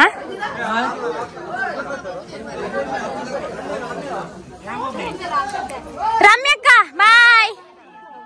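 Several women talk and chatter nearby outdoors.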